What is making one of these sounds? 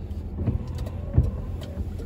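A windshield wiper sweeps across the glass.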